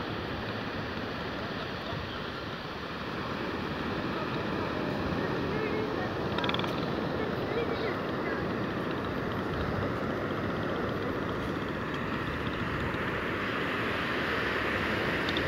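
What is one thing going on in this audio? Wind blows steadily and roughly across an open outdoor space.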